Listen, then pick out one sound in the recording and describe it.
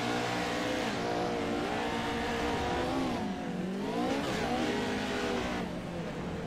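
Racing car engines roar and rev, rising and falling in pitch.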